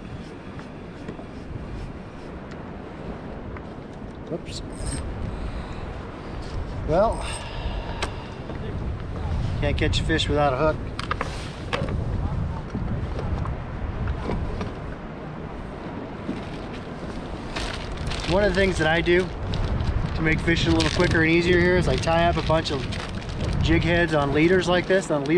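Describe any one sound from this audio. Wind rumbles across open water outdoors.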